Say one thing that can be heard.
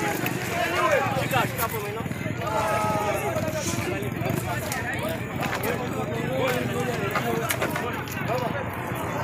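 A crowd of men and women talk and shout excitedly outdoors.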